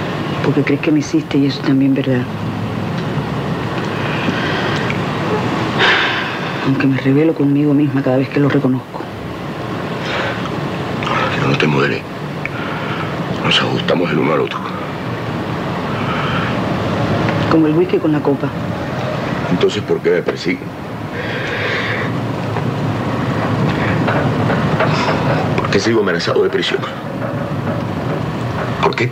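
A man speaks nearby in an earnest, emotional voice.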